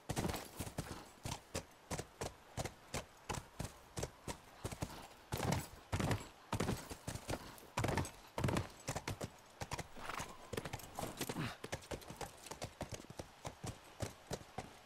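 A horse's hooves clop on pavement.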